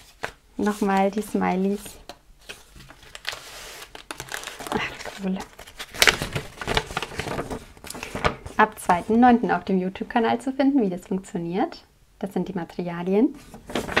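Paper rustles and slides as sheets are handled.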